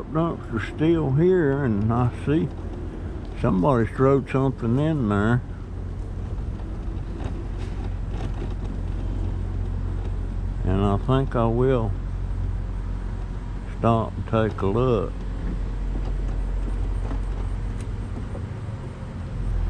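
An electric scooter motor hums steadily.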